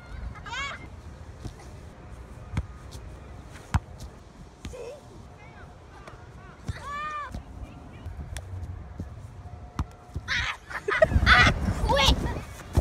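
Young girls shout and call out outdoors.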